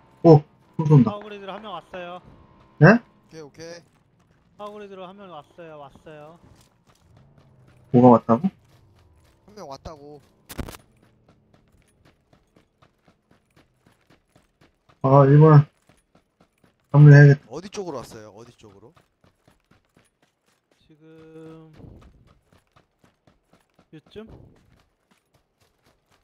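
Footsteps run over dry ground.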